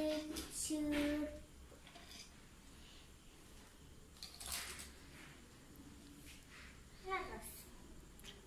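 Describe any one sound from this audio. Plastic toys clatter on a glass table.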